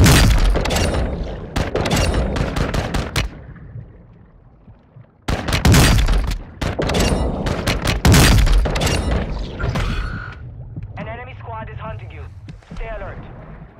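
Bubbles gurgle and rush underwater.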